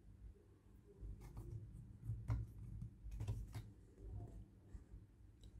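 Paper inserts rustle as they are lifted from a cardboard box.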